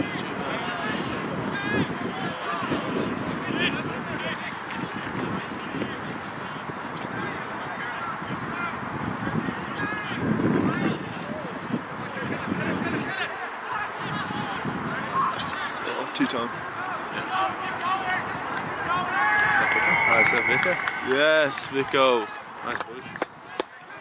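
Rugby players shout to each other across an open field.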